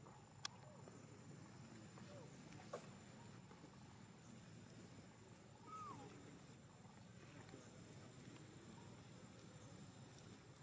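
A baby monkey squeaks and whimpers close by.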